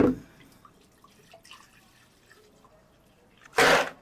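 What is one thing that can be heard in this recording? Milk pours into a plastic blender jug.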